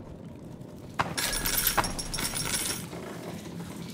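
Metal objects clatter and jingle as items are picked up.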